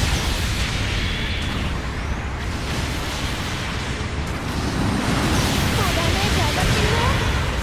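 A blizzard roars with wind and driving snow.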